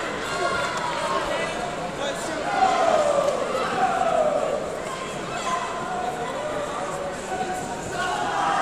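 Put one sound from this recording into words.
Voices of a crowd murmur and echo in a large hall.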